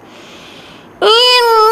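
A boy chants in a loud, drawn-out voice through a microphone.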